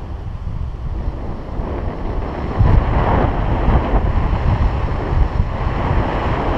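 Wind rushes and buffets the microphone during a paraglider flight.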